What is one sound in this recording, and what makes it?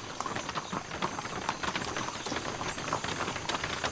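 A horse's hooves clop on stone.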